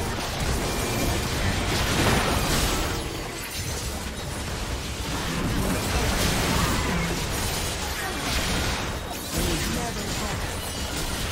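Spell effects crackle and burst in a fast-paced fight.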